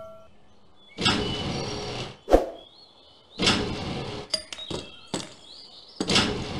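A machine clanks and hums as it rises out of the ground.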